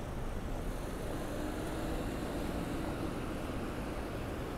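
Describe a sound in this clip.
A car drives past on a wet road, its tyres hissing.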